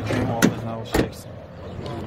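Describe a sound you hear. A hand rubs and taps on a car window.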